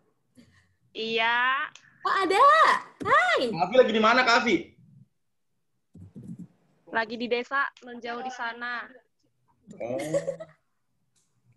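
A young woman laughs and talks excitedly over an online call.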